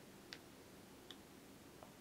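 A paintbrush dabs in a plastic palette.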